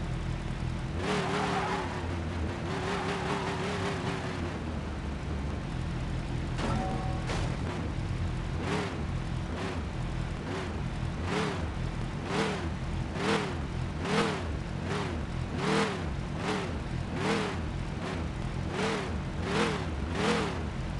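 A game car engine idles and revs gently as the car drives slowly.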